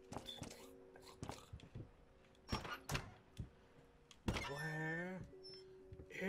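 A wooden cabinet door opens with a knock.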